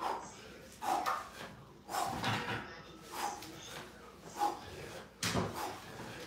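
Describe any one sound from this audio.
A man breathes out hard with each pull-up.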